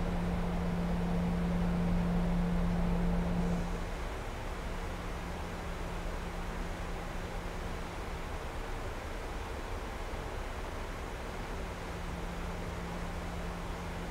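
Jet engines drone steadily, heard from inside an aircraft.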